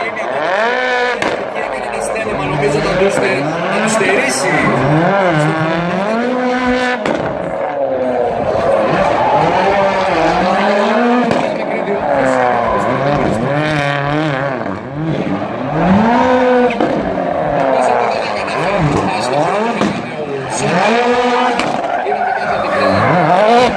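Tyres screech on tarmac as a car drifts.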